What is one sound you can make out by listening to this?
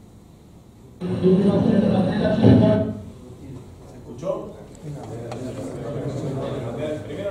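A man speaks to an audience, heard from a distance.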